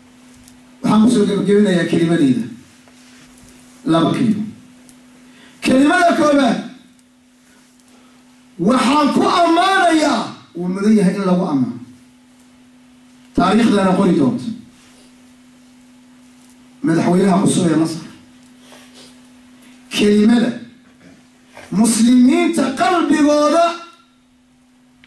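A man speaks forcefully in short bursts through a microphone and loudspeaker, with pauses between phrases.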